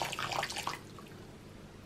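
Water pours into a glass bowl.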